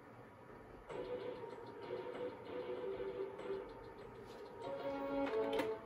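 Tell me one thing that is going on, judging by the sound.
Music plays through small computer speakers.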